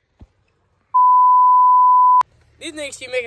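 A steady electronic test tone beeps.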